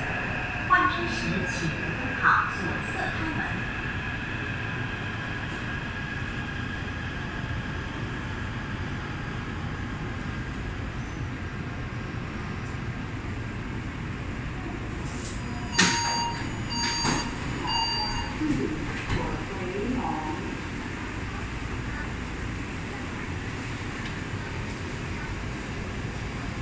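A subway train rumbles steadily while moving.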